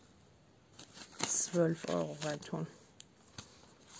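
Paper banknotes rustle as they are handled.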